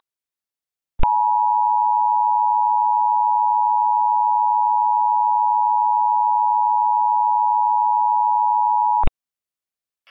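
A steady two-tone emergency alert attention signal blares.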